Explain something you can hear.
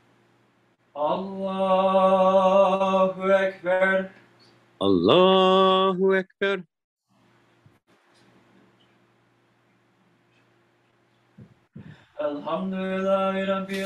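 A woman sings long, sustained notes close by, with pauses between phrases.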